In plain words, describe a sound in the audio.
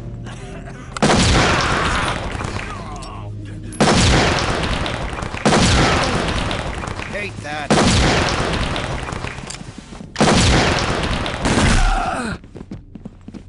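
Smoke grenades hiss loudly.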